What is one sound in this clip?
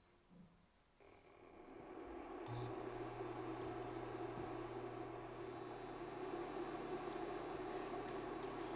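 A spatula stirs liquid in a pot, scraping softly against its sides.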